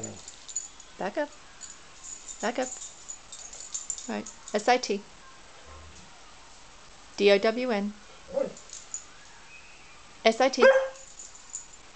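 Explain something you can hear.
A dog whines and yips in short bursts.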